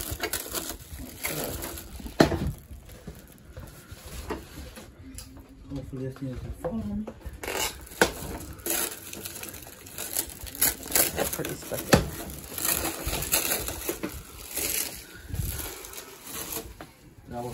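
Plastic wrap crinkles and rustles as hands handle it.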